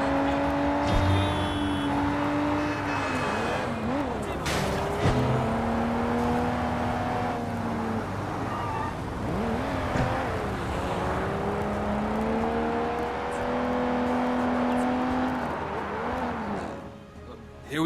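A car engine hums and revs steadily as the car drives.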